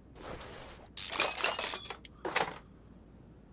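A ratchet wrench clicks rapidly as bolts are loosened.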